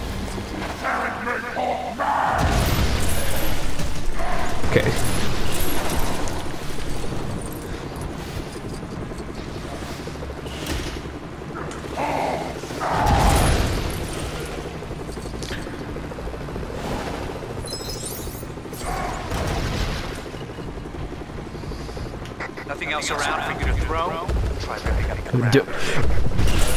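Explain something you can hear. Heavy objects crash and clatter as they are smashed.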